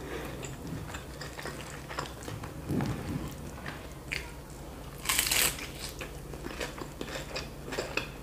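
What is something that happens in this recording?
A woman chews food wetly and smacks her lips close to a microphone.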